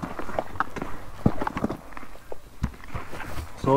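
Footsteps crunch on dry dirt and gravel outdoors.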